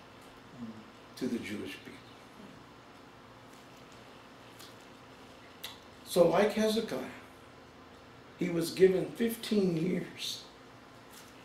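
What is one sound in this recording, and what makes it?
A middle-aged man speaks calmly, with pauses between phrases.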